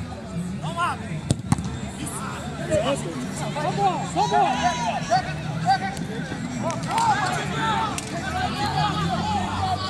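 Players shout and call out across an outdoor pitch.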